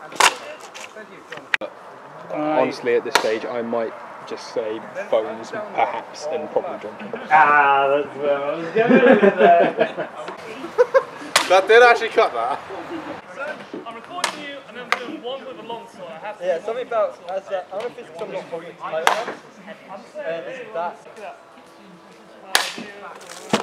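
Thrown blades strike wooden posts with sharp thuds.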